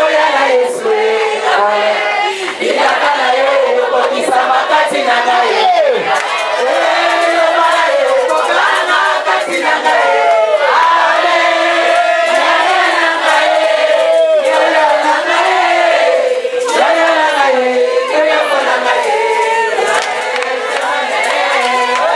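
A crowd sings loudly together in a large room.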